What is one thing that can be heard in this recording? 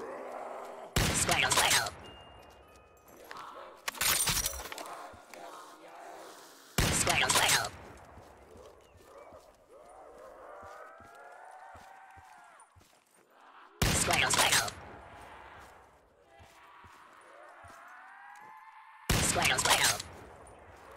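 A sniper rifle fires loud, echoing shots every few seconds.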